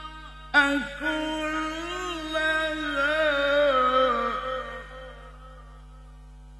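An elderly man chants a long, wavering melodic recitation through a microphone, then trails off.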